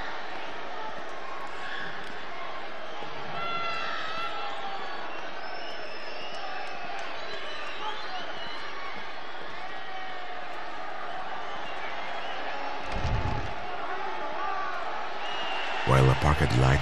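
A large crowd cheers and whistles in a big echoing arena.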